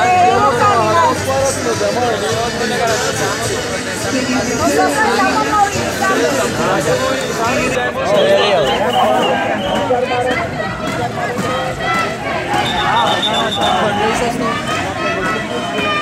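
A dense crowd of men and women shouts and talks loudly close by.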